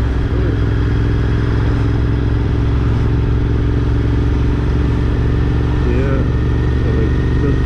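A motorcycle engine rumbles steadily up close while riding.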